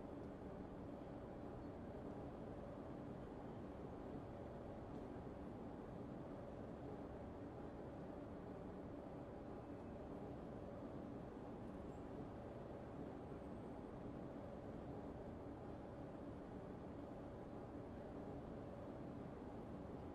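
A standing train hums steadily while idling.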